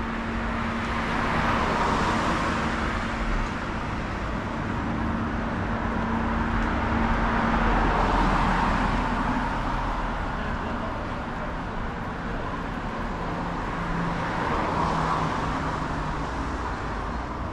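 Cars drive past on a nearby street, swelling and fading.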